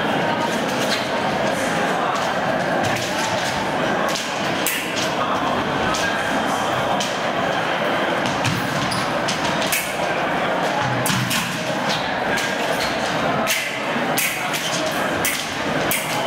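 Fencing blades clash and clink together in quick bursts.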